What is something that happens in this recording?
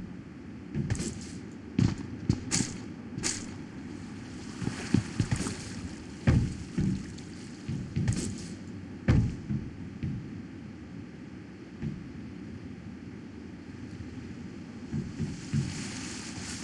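Footsteps thud on a metal container roof.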